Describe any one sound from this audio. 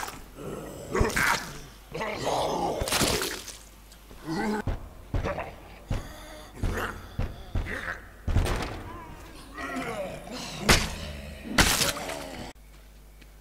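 Heavy blows thud as fighters brawl.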